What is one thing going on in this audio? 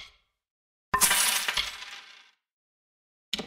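A game chime sounds once as an item is sold.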